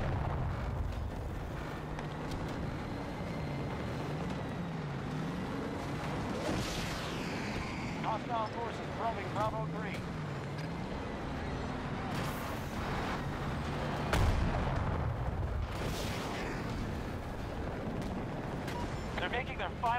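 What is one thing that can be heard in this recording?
A tank engine rumbles.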